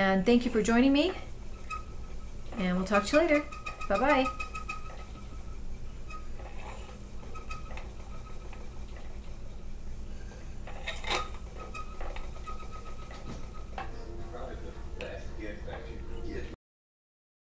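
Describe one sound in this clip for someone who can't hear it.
A spinning wheel whirs steadily.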